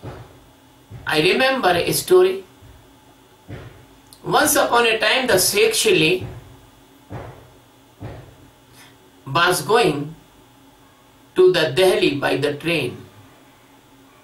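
An elderly man speaks calmly and slowly, close by, in short phrases with pauses.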